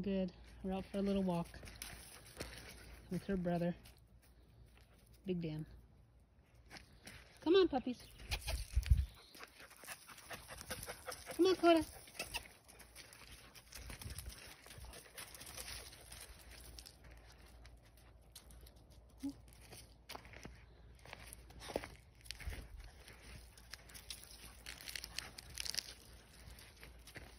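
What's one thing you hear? Dogs' paws crunch softly on dry leaves and twigs.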